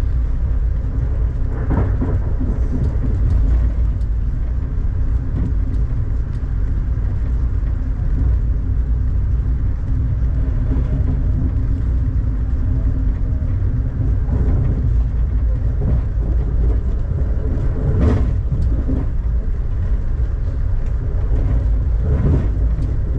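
Rain patters on a train window.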